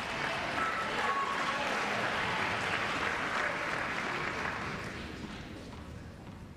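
A crowd applauds, then fades.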